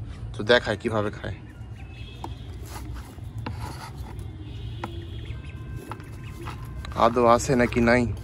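A wooden stick scrapes and knocks against soil in a plastic bucket.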